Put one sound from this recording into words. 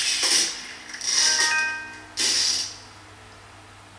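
A cheerful game jingle plays.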